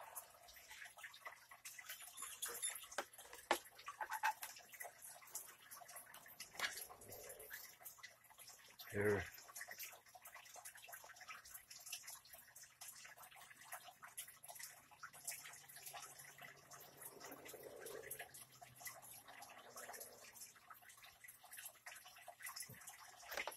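Plastic rattles and clicks as a device is handled.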